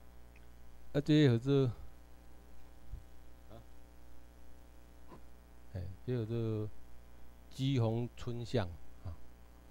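A man speaks through a microphone in short bursts with pauses.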